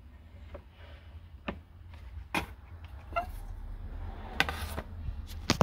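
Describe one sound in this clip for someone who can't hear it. The metal tone arm of a wind-up gramophone knocks and clicks as a hand moves it.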